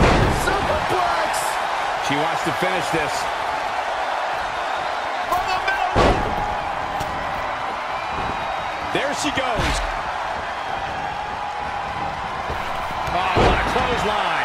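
Bodies slam onto a wrestling ring mat.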